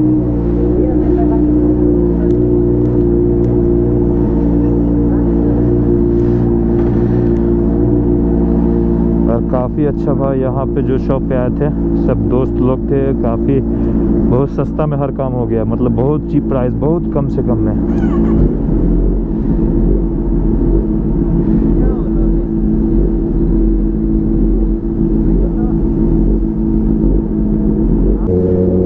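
A motorcycle engine idles with a steady rumble.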